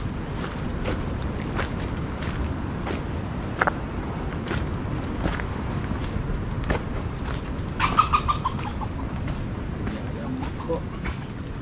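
Wind rumbles and rustles leaves outdoors.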